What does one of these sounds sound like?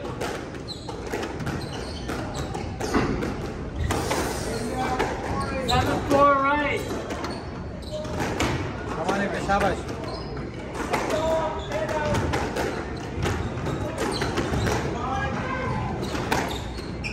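A squash ball smacks against the walls in a hollow, echoing court.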